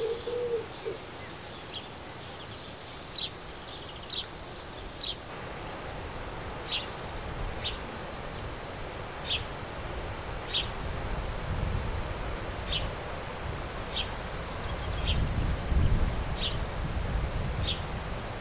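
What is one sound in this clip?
Small birds chirp with short, high calls, again and again.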